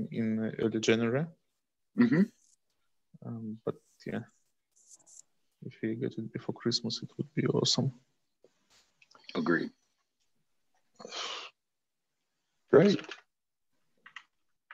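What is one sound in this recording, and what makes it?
A man speaks calmly over an online call, with short pauses.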